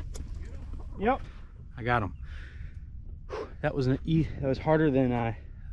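Chickens cluck.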